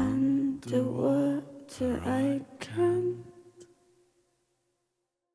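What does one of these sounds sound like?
A group of singers hold sustained notes that ring out in a large echoing hall.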